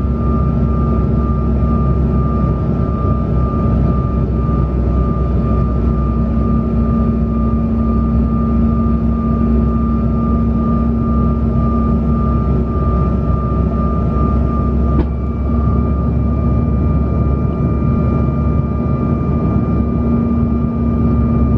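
Jet engines roar and whine steadily inside an airliner cabin in flight.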